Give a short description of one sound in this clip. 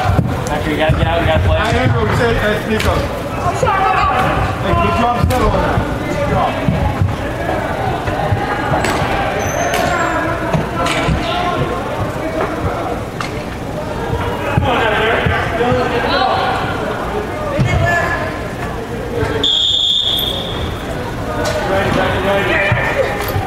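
Spectators and players shout and call out in a large echoing indoor hall.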